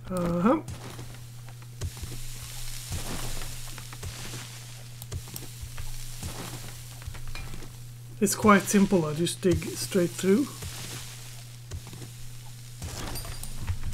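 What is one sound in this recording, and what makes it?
A shovel thuds into dirt and rock again and again.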